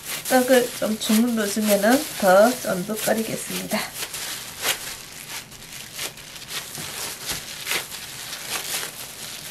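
Plastic wrap crinkles and rustles under hands.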